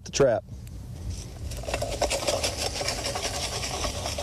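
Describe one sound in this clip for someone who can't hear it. Dry corn stalks rustle and crunch.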